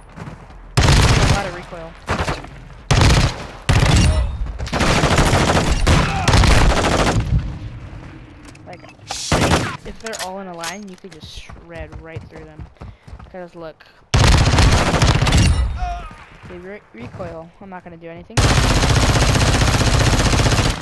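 Guns fire in rapid bursts at close range.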